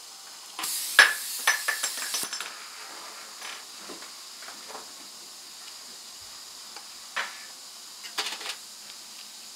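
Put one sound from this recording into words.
Metal tools click against a plastic jaw.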